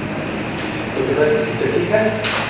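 A man speaks nearby in a room.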